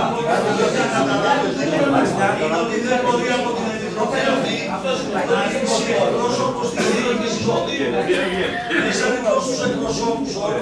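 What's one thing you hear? A woman speaks with animation in a room with some echo.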